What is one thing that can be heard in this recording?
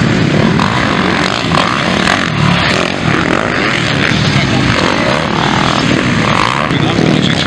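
Dirt bike engines rev and buzz loudly.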